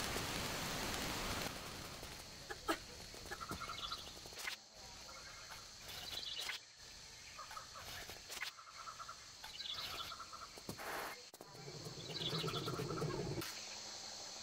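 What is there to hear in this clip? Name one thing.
Bare footsteps pad on stone and leaves.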